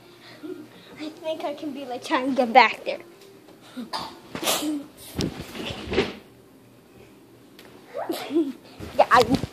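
A young child talks and laughs close by.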